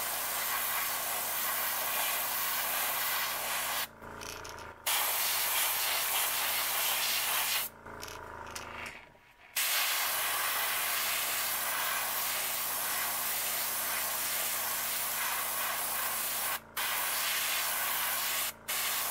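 An airbrush hisses steadily as it sprays paint.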